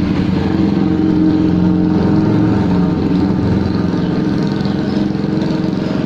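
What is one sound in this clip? Motorcycle engines hum as motorbikes ride past.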